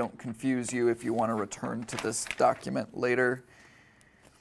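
A young man reads aloud clearly in a room.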